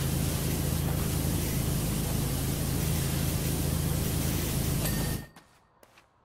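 A pressure washer sprays water with a loud, steady hiss, then stops.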